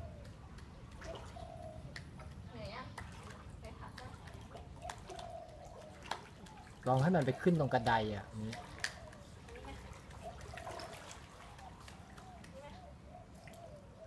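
Water swishes around a woman's legs as she wades.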